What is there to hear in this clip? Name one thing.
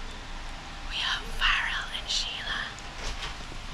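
A woman laughs softly close by.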